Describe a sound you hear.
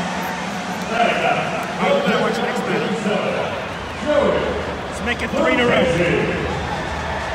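Nearby fans shout and cheer in bursts.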